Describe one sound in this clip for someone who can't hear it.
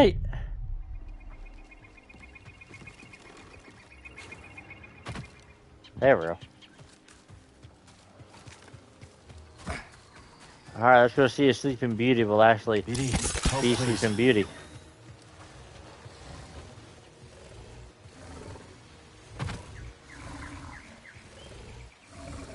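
Footsteps run over grass and rock.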